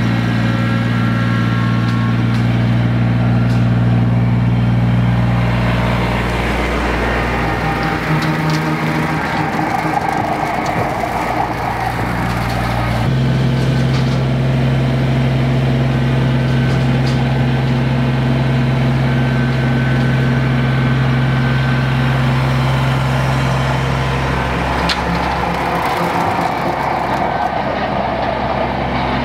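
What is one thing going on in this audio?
A rotary mower whirs as it cuts through brush.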